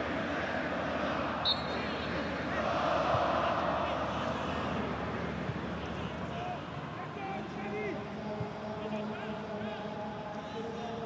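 A stadium crowd roars and chants loudly outdoors.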